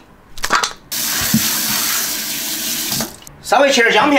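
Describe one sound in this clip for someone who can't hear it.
Water runs from a tap into a sink.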